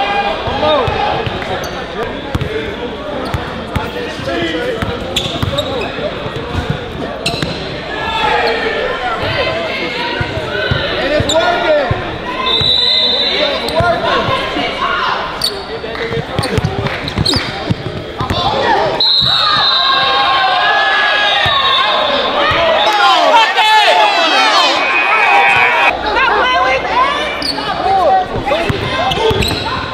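A crowd of young men cheers and shouts in a large echoing gym.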